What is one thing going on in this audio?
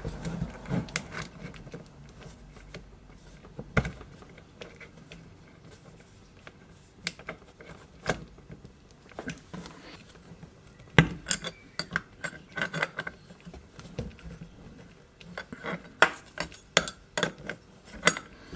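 Metal wrenches scrape and click against a tool's collet.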